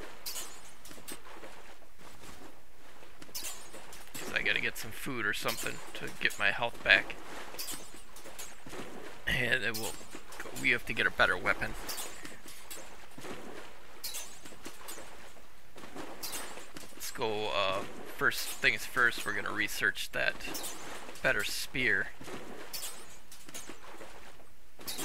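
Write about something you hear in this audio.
Water splashes against a speeding boat's hull.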